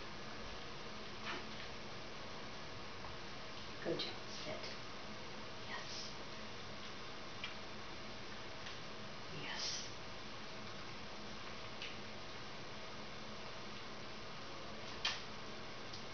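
A puppy's paws patter softly on a wooden floor.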